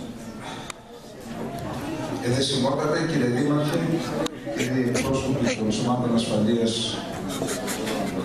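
A middle-aged man speaks calmly through a microphone, heard over a loudspeaker in a room that echoes.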